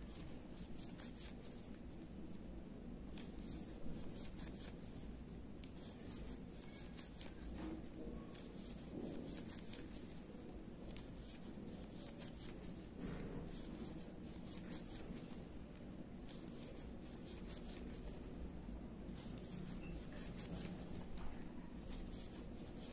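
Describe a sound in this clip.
A crochet hook softly scratches and ticks through yarn.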